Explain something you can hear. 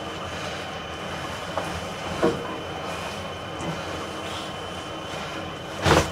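A blanket rustles as it is moved and folded.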